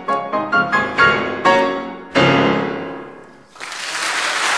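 A piano plays loud closing chords in a hall.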